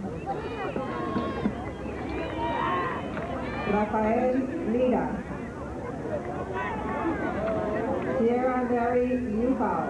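A crowd of men and women talk over one another outdoors.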